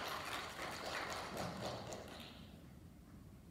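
A band plays a held chord that fades away in a large, echoing hall.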